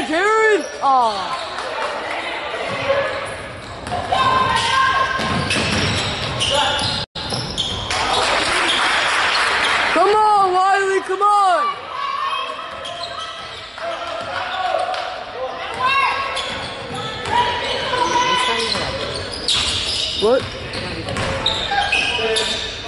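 A crowd in the stands chatters and cheers in a large echoing gym.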